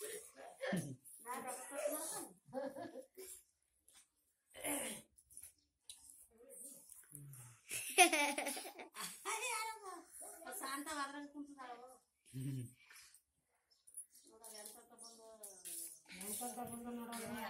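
A small child speaks in a high voice nearby.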